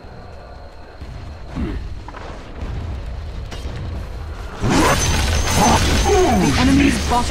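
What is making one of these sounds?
Magic blasts and strikes crackle and thud in a game battle.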